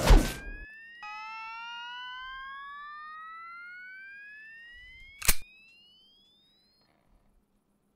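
A futuristic weapon charges with a steadily rising electronic whine.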